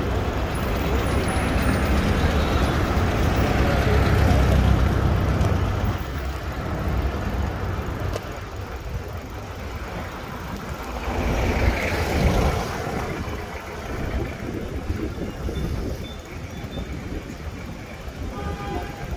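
Car engines hum and tyres roll along the street.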